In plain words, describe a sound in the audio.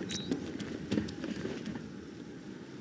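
Footsteps thud quickly on a hard rooftop.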